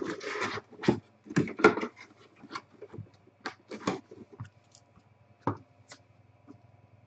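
Plastic wrap crinkles and tears as a box is opened by hand.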